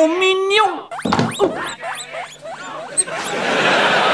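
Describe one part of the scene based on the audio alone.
Guinea pigs squeak in quick rising chirps.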